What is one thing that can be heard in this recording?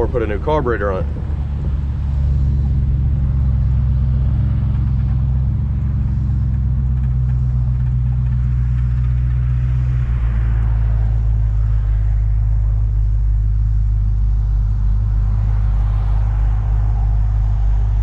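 A car engine rumbles deeply and steadily while driving.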